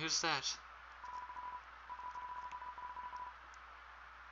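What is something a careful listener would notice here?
Short electronic blips tick rapidly as text types out.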